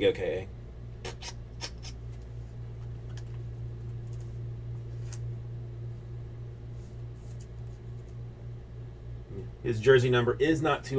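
Trading cards rustle and tap softly as hands handle them.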